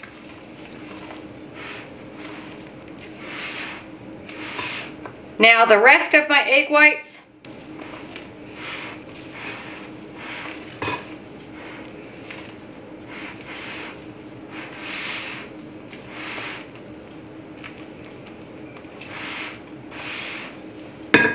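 A spatula scrapes and swishes through thick batter in a bowl.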